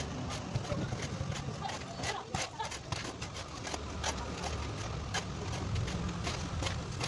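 A shovel scrapes and scoops wet cement on concrete.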